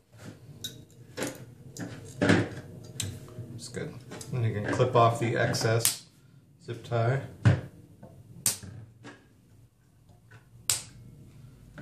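Pliers snap shut on a small part.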